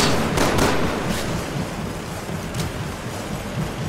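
A gun's magazine clicks as it is reloaded.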